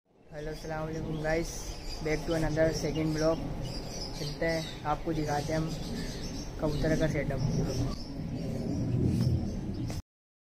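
A young man talks casually and close to the microphone.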